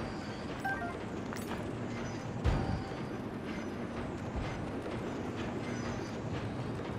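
A cart rumbles and rattles steadily along metal rails.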